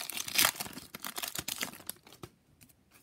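A plastic wrapper crinkles and rustles.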